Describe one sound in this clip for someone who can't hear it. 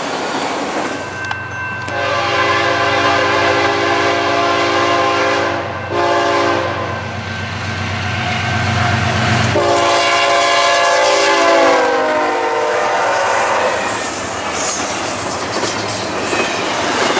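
Diesel locomotives rumble deeply as they pass.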